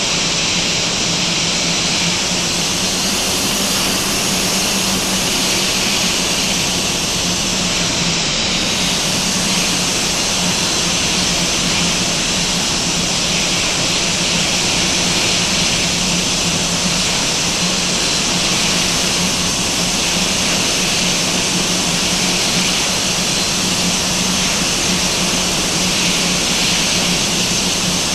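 A jet engine whines and roars steadily as an airliner taxis.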